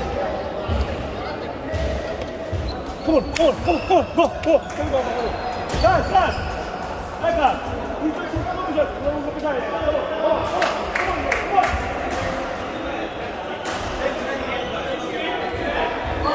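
Many people chatter in a large echoing hall.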